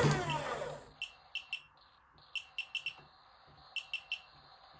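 A power supply beeps in short, quick chirps.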